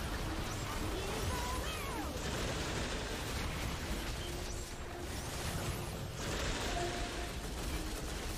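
Magic spells whoosh and crackle in a busy fantasy battle.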